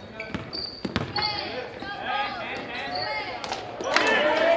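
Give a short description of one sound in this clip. A basketball bounces with hard thuds.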